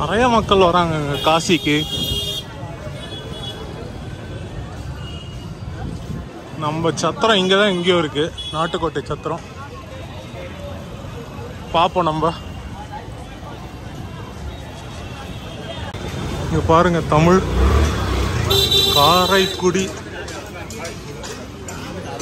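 A crowd chatters and murmurs in a busy street outdoors.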